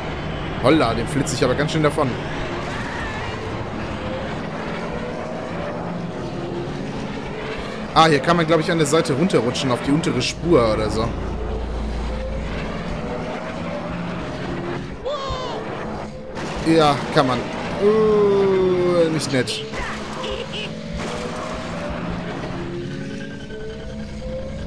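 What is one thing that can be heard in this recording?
A racing engine whines steadily at high speed.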